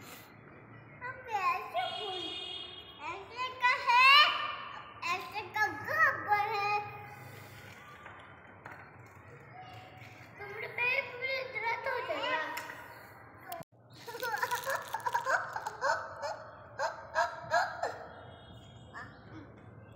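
A young boy chants loudly in a high voice close by.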